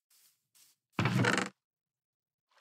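A large wooden chest creaks open.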